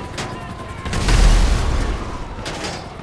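A helicopter explodes overhead.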